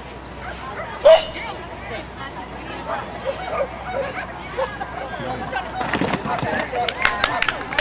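A woman calls out to a dog outdoors.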